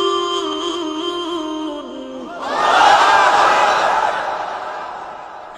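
A man preaches loudly into a microphone, with a ringing echo.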